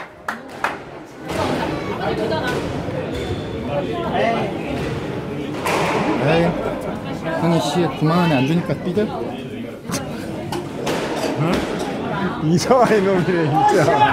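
A squash ball cracks off rackets and the walls of an enclosed court.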